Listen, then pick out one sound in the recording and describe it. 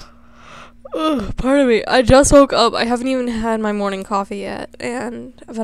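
A girl speaks with animation close to a microphone.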